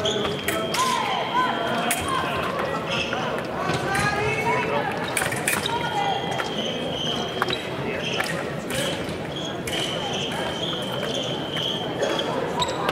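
Fencers' feet stamp and shuffle on a springy floor.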